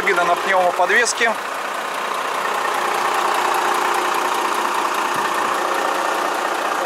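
A truck engine idles with a steady hum.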